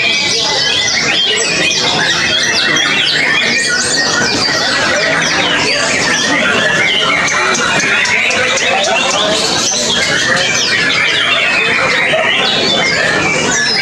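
A songbird sings loud, rapid chirping trills close by.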